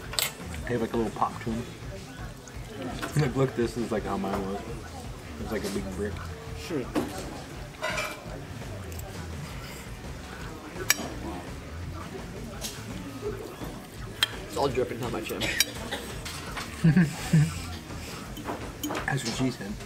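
Spoons clink against glass bowls.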